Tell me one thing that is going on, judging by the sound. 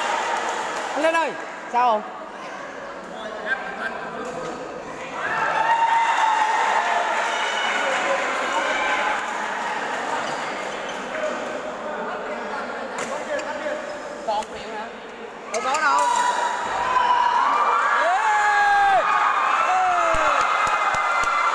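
Sneakers squeak on the hard floor.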